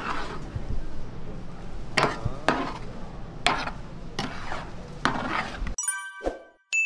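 A spatula scrapes and clanks against a metal pan.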